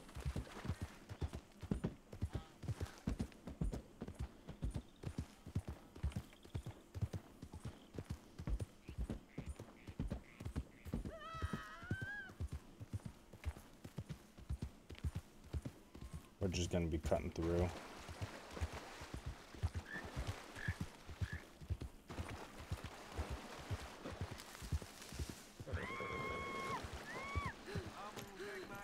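Horse hooves pound steadily on the ground at a gallop.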